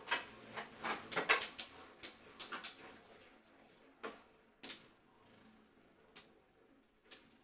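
Spinning tops whir as they glide around a plastic bowl.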